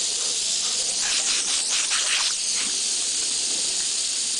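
Water splashes onto a dog's wet fur.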